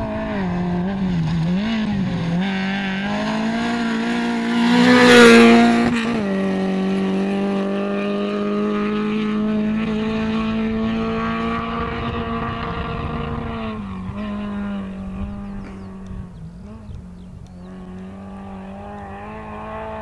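A rally car engine revs hard and changes gear as it races past.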